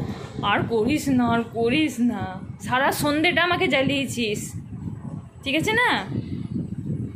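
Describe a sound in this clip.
A woman talks close by in a high, playful voice.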